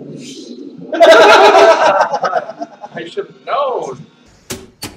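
Young men burst out laughing close by.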